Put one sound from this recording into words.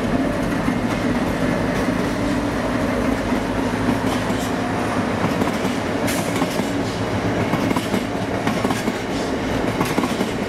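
A diesel locomotive rumbles and drones as it hauls a freight train past.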